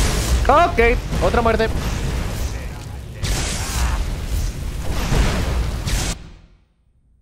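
A fire roars loudly.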